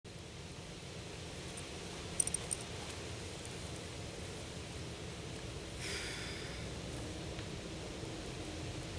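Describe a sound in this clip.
A shallow creek trickles gently.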